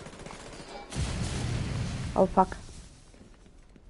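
Gunfire bursts rapidly at close range.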